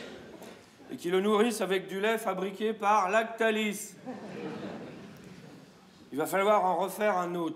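A man reads aloud in a calm, measured voice through a microphone in a large hall.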